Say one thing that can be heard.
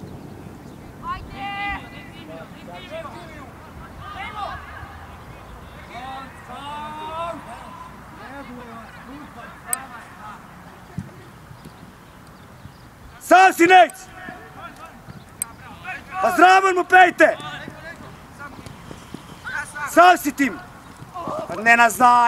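Young men shout loudly to each other across an outdoor field.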